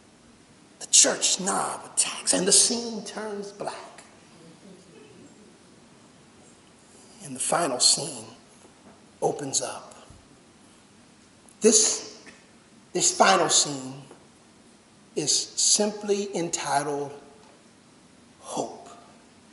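A man preaches with animation through a microphone, in bursts with pauses.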